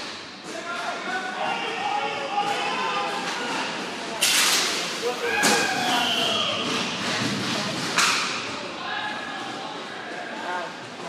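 Players shout to each other across the rink.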